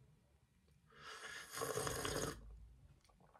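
A young man slurps a drink.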